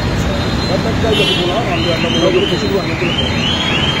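A young man talks on a phone close by.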